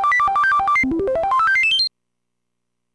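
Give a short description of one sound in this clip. Electronic beeps tick up quickly in rising pitch.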